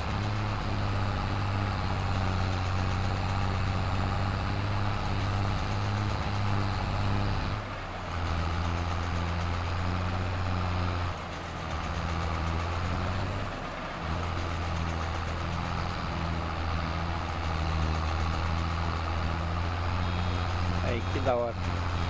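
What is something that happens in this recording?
A tractor engine rumbles steadily as it drives.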